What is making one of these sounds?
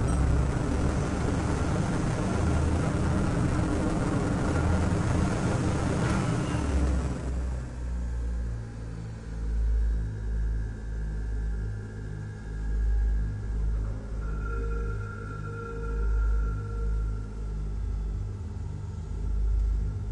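A spaceship engine roars, then settles into a low, throbbing hum.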